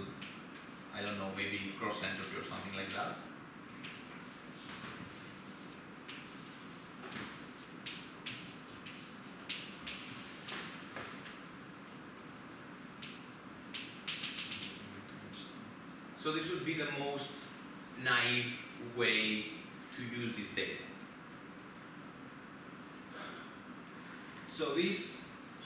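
A young man speaks calmly to an audience.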